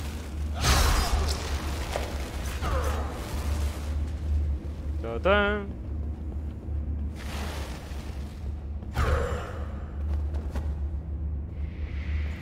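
Heavy armoured footsteps thud and clank on stone.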